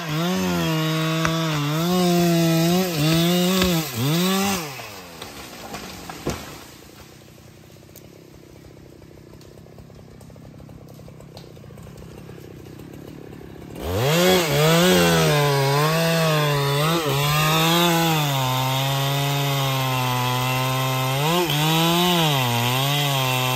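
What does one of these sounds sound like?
A chainsaw engine roars and revs while cutting wood.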